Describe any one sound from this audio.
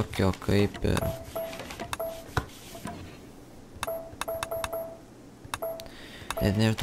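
Short electronic blips sound repeatedly.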